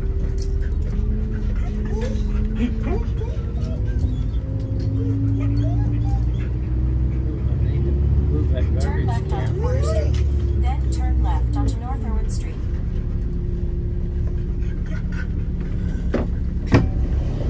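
A vehicle's engine hums steadily from inside the cab as it drives along.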